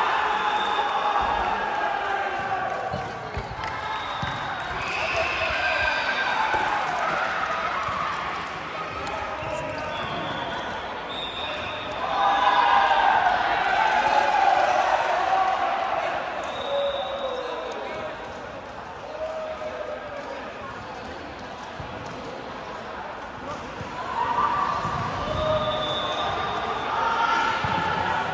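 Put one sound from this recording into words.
Many young women and girls chatter and call out across a large echoing hall.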